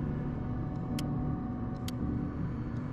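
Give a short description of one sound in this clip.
Toggle switches click.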